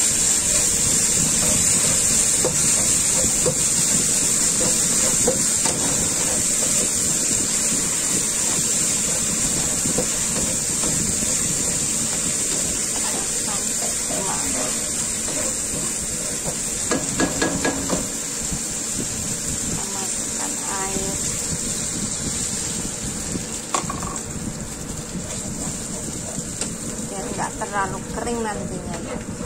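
Sauce sizzles steadily in a hot pan.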